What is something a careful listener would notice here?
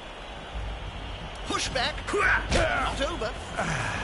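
Players in a fantasy ball game collide with thuds and clashes.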